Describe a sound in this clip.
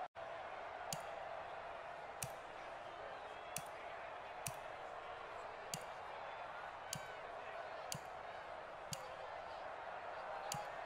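Short menu clicks tick one after another as a list scrolls.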